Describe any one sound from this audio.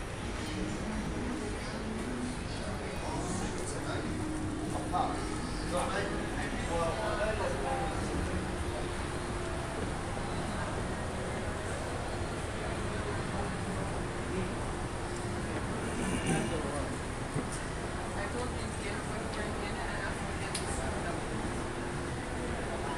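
A crowd of shoppers murmurs in a large echoing hall.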